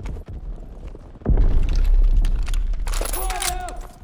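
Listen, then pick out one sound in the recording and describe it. A rifle is picked up with metallic clicks and rattles.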